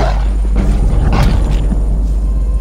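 A burst of fire blasts loudly.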